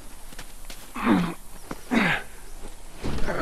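A man talks calmly at close range.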